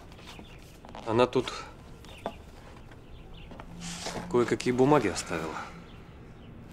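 A younger man speaks calmly.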